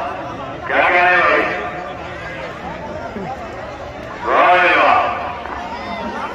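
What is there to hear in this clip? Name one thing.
A man shouts loudly over a crowd.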